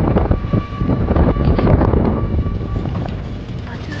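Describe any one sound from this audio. A small vehicle engine rumbles while driving.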